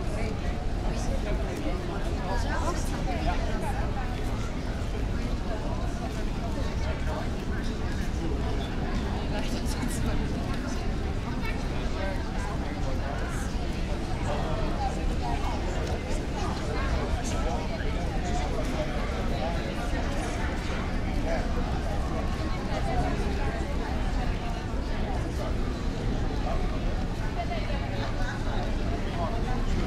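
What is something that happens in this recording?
A crowd of people chatter in a busy open square.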